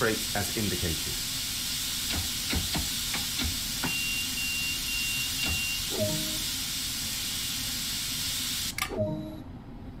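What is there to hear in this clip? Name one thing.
A brake lever clicks into its notches in a train cab.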